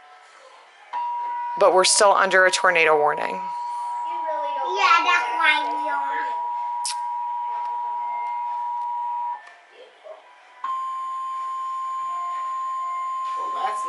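A steady electronic alert tone sounds from a television.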